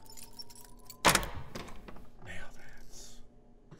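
A door unlatches with a loud clack and swings open.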